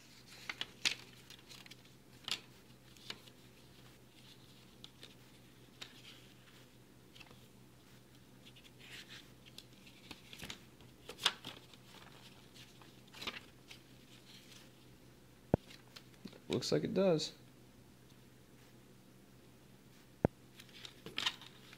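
Plastic disc cases click and tap.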